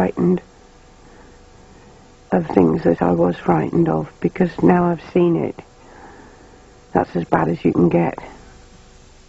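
An older woman speaks calmly close to a microphone.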